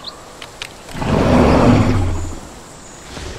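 A large beast lets out a loud, deep roar.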